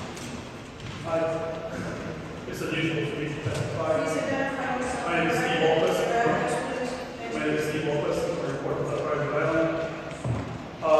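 A man speaks calmly into a microphone in an echoing hall.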